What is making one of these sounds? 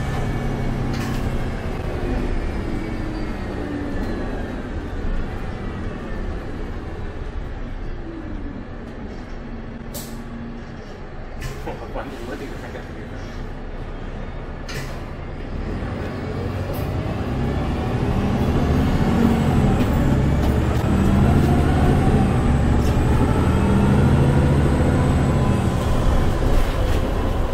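Small rattles and knocks sound inside the bus.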